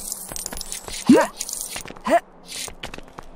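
Coins chime as they are picked up.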